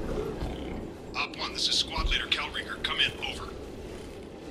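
A man calls out urgently over a crackling radio.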